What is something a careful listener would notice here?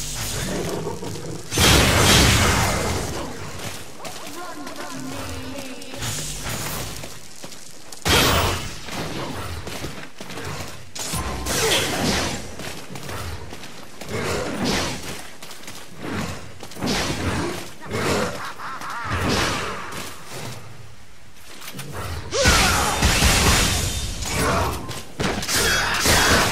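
Swords clash and slash with sharp metallic hits.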